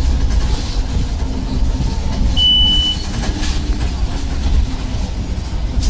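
The interior of a moving bus rattles and creaks.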